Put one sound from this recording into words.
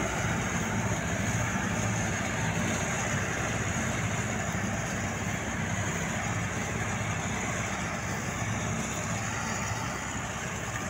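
Wind blows across an open field, rushing against the microphone.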